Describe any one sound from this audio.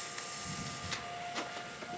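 A welding torch crackles and hisses steadily.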